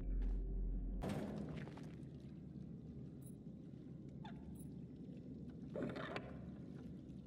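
A metal latch rattles and scrapes against wood.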